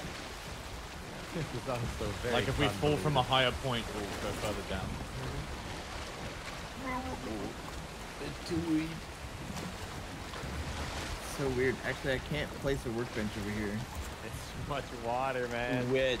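Water splashes as a swimmer paddles.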